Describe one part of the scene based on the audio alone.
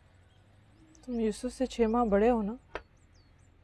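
A young woman speaks softly and with emotion nearby.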